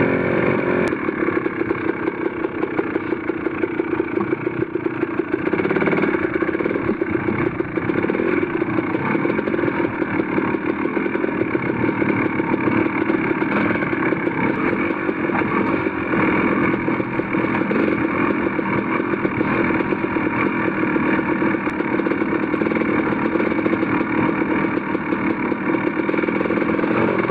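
A dirt bike engine drones steadily close by.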